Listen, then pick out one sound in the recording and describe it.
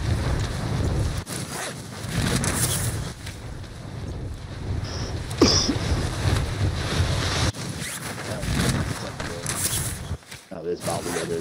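Wind rushes loudly past during a fast fall.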